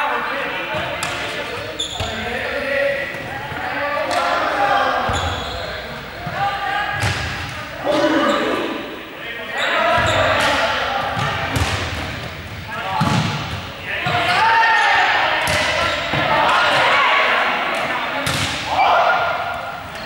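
Many young people shout and call out across a large echoing hall.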